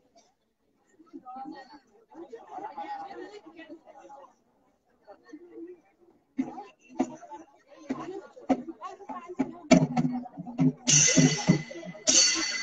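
A group of men and women sing together close by.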